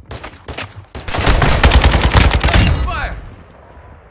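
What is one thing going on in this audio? Rapid gunfire rattles loudly and echoes.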